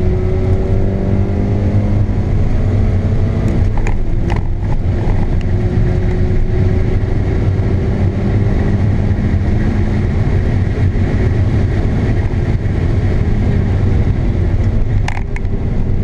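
A car engine hums and revs loudly from inside the cabin.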